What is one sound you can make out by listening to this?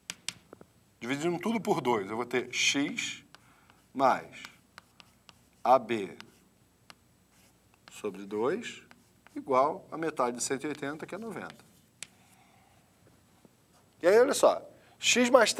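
A man speaks calmly, explaining, close by.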